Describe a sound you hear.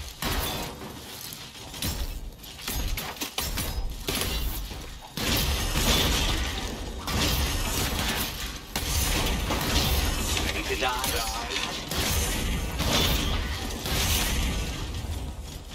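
Metal robots clang and shatter under heavy blows.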